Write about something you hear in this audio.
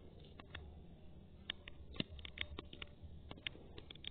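Soft taps sound on a phone keyboard.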